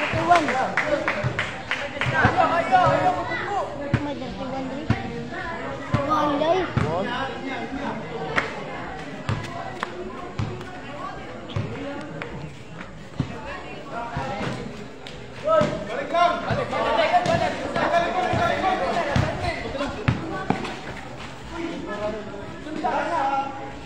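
Young men shout to each other during play.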